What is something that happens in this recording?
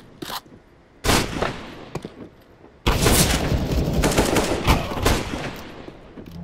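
Rifle shots ring out sharply and loudly.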